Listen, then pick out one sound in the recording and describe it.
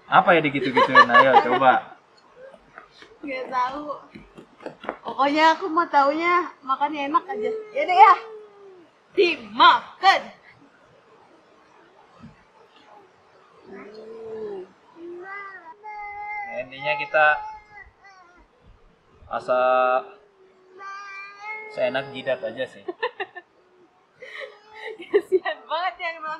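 A woman talks cheerfully close by.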